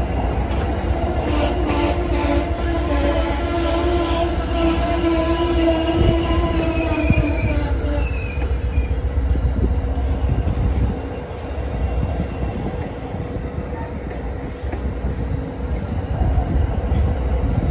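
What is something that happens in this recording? A passenger train rumbles and clatters past close by.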